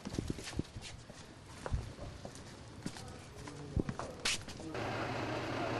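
Footsteps shuffle and knock on a hard floor.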